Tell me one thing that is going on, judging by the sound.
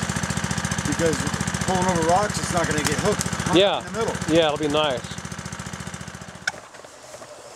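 A small petrol engine runs steadily close by.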